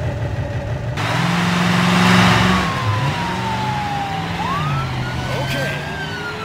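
A car engine revs as the car drives off.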